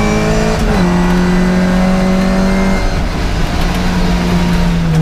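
The race-tuned four-cylinder engine of a classic Mini roars at high revs, heard from inside the car.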